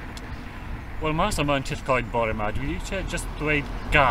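An older man speaks calmly and close by, outdoors.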